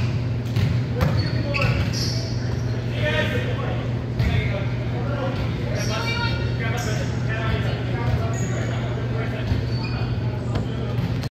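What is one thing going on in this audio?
Volleyballs thud and bounce on a hard floor.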